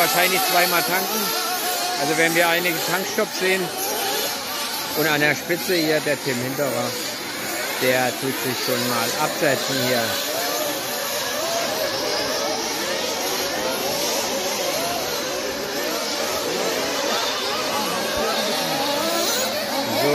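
Several nitro-powered 1/8-scale off-road buggies race, their small engines buzzing and whining.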